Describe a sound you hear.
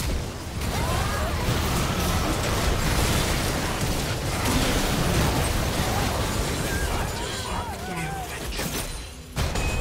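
Magic blasts and explosions burst in quick succession during a game battle.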